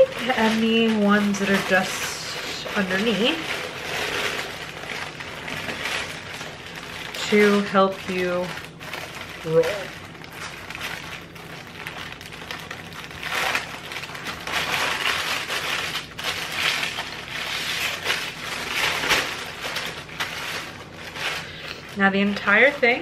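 Parchment paper crinkles and rustles as it is rolled.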